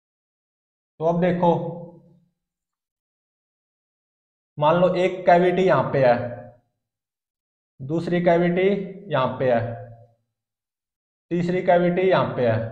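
A young man explains calmly in short phrases, close by.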